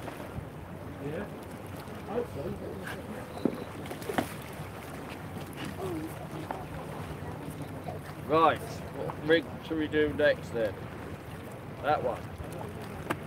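A middle-aged man talks close by, with pauses.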